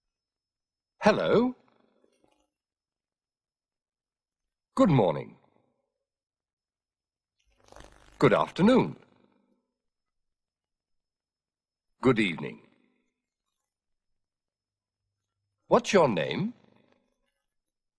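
A man speaks calmly and clearly, saying short phrases with long pauses between them.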